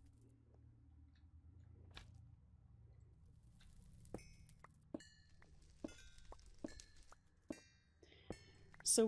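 Pickaxe blows crack against stone blocks.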